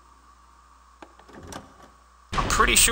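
A heavy metal door creaks open slowly.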